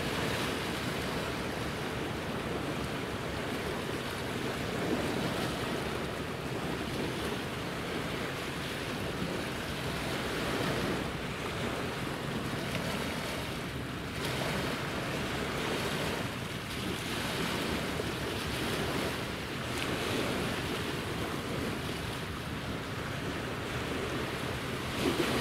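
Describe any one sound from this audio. Wind blows steadily outdoors, buffeting the microphone in gusts.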